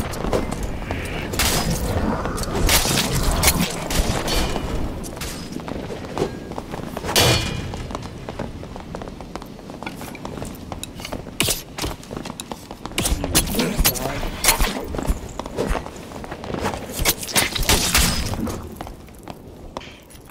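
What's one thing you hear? Footsteps thud and scrape on a stone floor.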